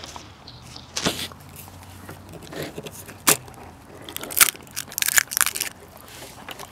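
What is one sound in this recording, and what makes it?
Eggshell cracks and crunches sharply.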